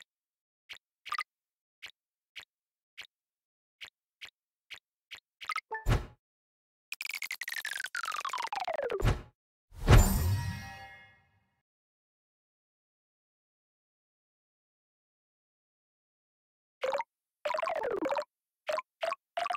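Short electronic game blips tick as tiles are collected.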